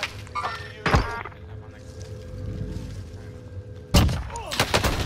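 Gunshots ring out sharply in a game.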